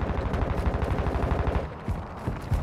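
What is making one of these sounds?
Footsteps tap quickly on a hard floor.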